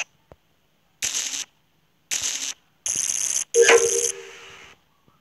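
Short electronic buzzes sound as wires snap into place.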